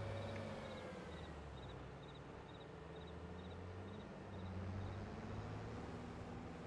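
A combine harvester engine drones steadily.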